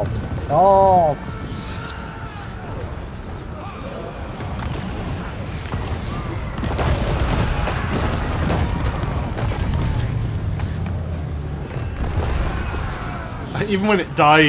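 A battle rumbles with a dense roar of noise.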